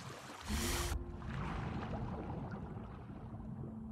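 Water rumbles, muffled and low, as if heard underwater.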